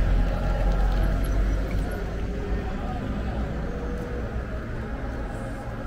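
A bicycle rolls along a paved street.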